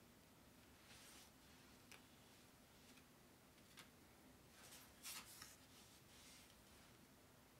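Paper cards rustle and slide against each other.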